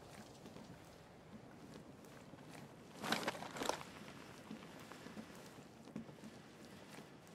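Heavy footsteps thud softly on a wooden floor.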